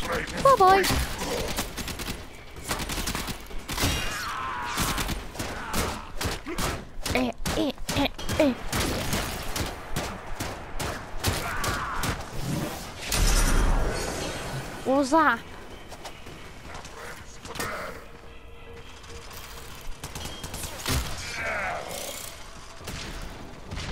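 Gunshots and blade strikes crack in quick bursts.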